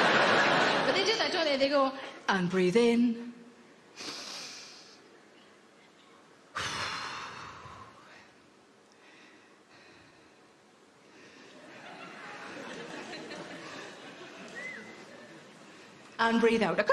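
A young woman speaks with animation into a microphone in a large hall.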